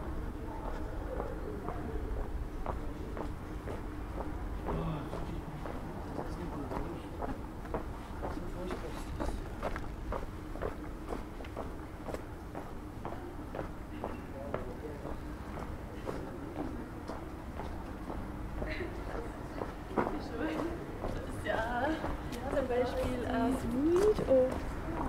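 Footsteps tap steadily on cobblestones.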